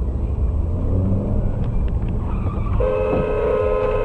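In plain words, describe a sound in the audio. A scooter crashes into the back of a car.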